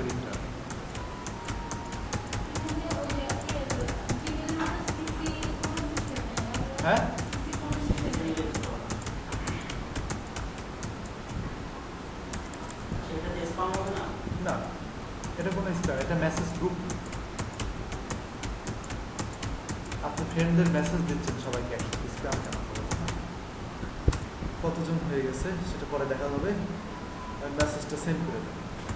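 A computer mouse clicks rapidly again and again.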